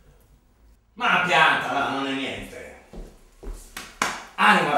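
An older man speaks loudly and angrily.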